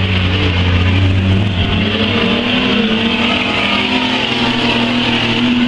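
Racing car engines roar loudly.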